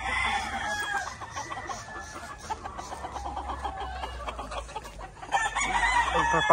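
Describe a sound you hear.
Hens cluck softly.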